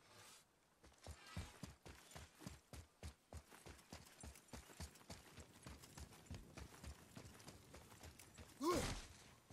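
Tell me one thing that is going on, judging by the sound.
Heavy footsteps run quickly over stone.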